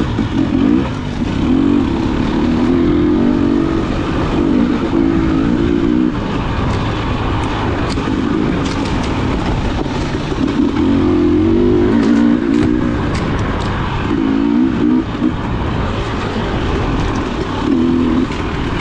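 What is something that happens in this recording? Tyres crunch and thump over a bumpy dirt trail.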